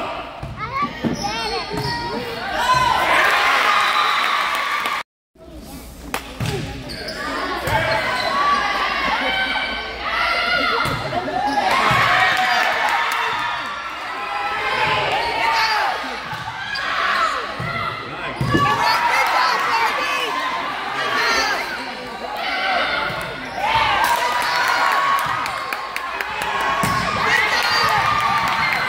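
Spectators and young girls cheer and shout in a large echoing gym.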